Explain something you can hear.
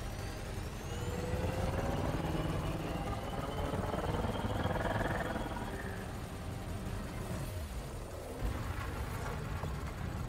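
Spaceship guns fire in bursts.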